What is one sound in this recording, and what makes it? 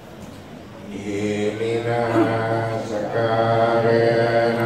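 A crowd of people chants together in unison.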